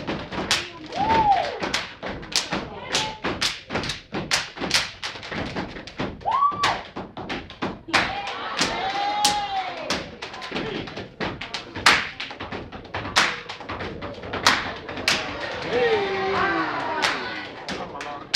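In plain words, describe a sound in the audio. Young men and women chant and shout loudly together.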